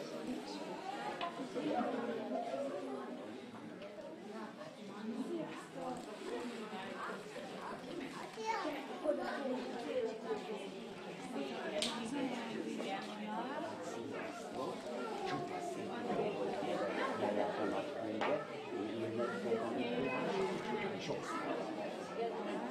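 Many small children chatter and call out.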